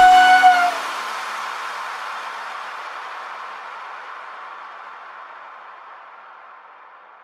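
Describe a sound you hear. Bicycle tyres roll over smooth asphalt.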